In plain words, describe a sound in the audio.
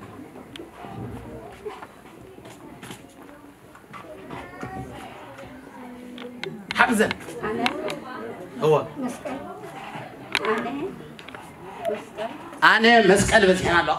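A woman speaks calmly to a small group in a room.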